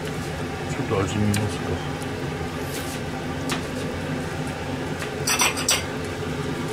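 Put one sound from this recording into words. A metal ladle clinks against a metal pan.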